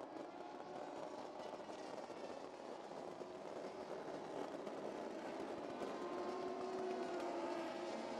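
Racing car engines roar in the distance.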